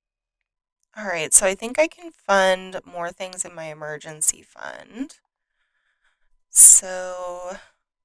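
A woman talks calmly and closely into a microphone.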